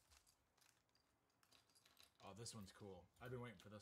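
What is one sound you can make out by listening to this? A plastic bag crinkles as it is opened.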